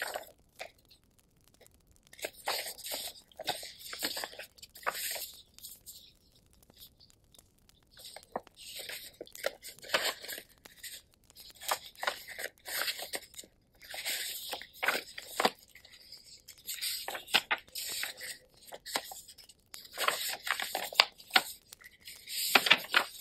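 Sheets of paper rustle and crinkle close up as hands shuffle them.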